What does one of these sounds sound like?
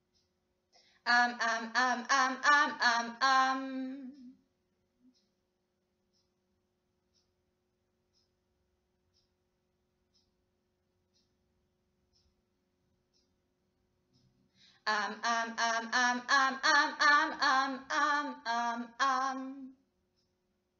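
A young woman sings short melodic phrases close by.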